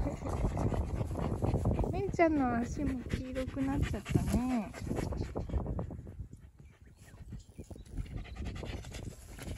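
A dog pants heavily close by.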